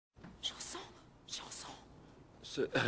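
A woman gasps close by.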